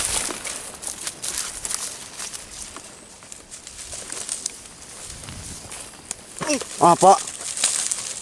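Dry reeds rustle and swish as a person pushes through them.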